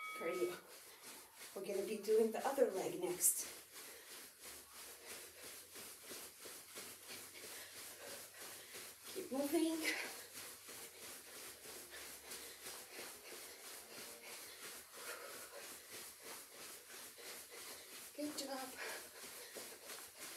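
Feet thud softly on a carpeted floor as a woman jumps in place.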